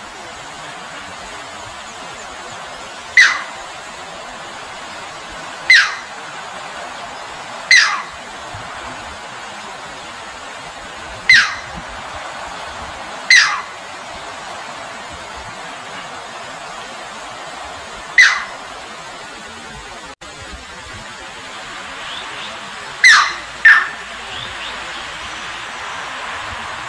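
Shallow water rushes and splashes steadily over rocks.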